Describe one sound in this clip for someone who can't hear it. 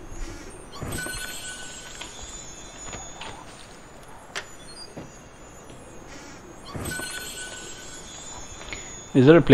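Coins jingle briefly as they are picked up.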